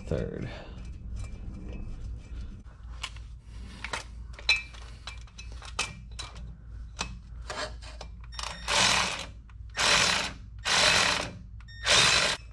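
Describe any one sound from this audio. Metal parts clink and tap under a hand.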